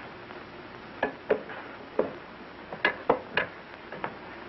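Plates clink as they are stacked.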